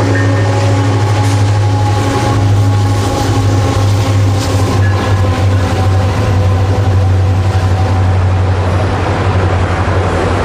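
Train wheels clatter and clank rhythmically over a steel bridge.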